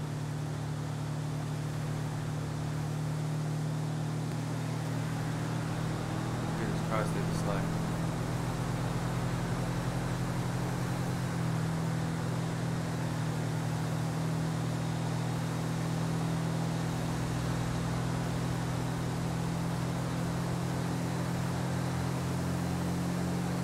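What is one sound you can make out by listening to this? A truck engine drones steadily as it drives along a highway.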